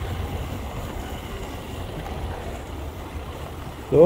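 A hand cart rolls over cobblestones.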